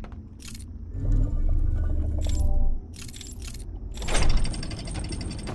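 A stone mechanism grinds and clicks as it turns.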